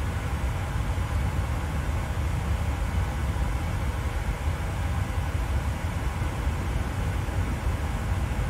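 Jet engines hum steadily at idle with a low, deep rumble.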